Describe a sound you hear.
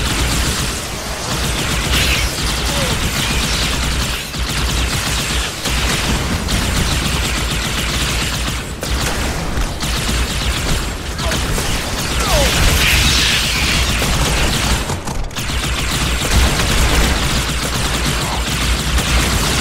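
Energy weapons fire in rapid bursts with sizzling blasts.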